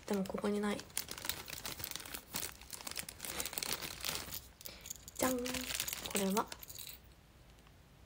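Plastic rustles and crinkles in hands.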